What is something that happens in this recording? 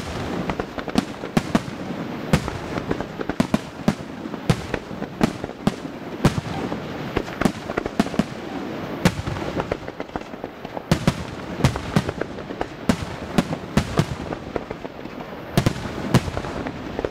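Fireworks burst with sharp bangs again and again.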